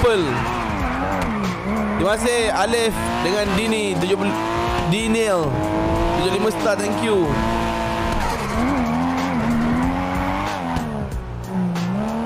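Tyres screech as a car slides through turns.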